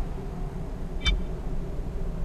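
A short electronic menu blip sounds once.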